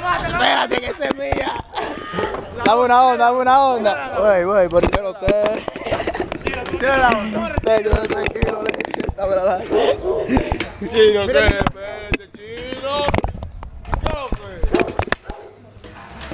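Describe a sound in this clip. A man talks and laughs loudly close by.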